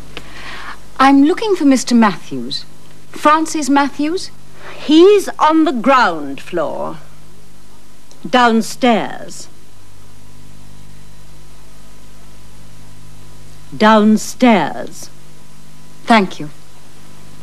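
An older woman speaks with animation nearby.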